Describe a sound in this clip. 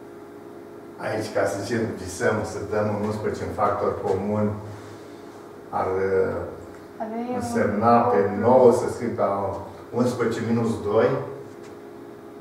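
An elderly man speaks calmly and explains, close by.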